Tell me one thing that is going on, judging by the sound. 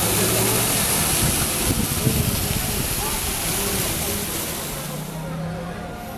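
Wind gusts loudly outdoors.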